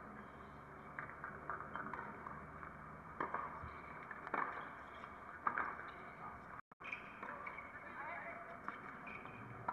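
Young women talk and cheer at a distance outdoors.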